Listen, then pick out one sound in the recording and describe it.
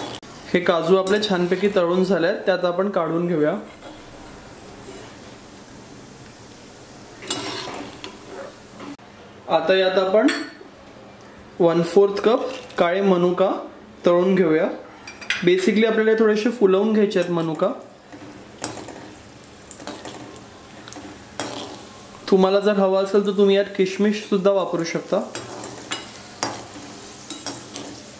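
Hot oil sizzles and bubbles in a pan.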